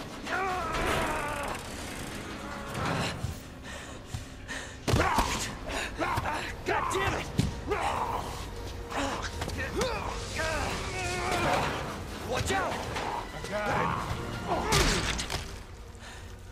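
A creature growls and snarls up close.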